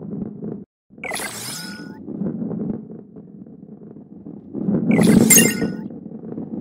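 A bright chime rings out briefly, twice.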